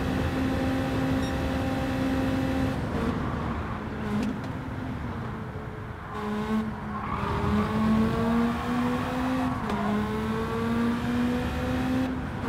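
A racing car engine roars steadily, dropping in pitch as it slows, then rising again through repeated gear changes.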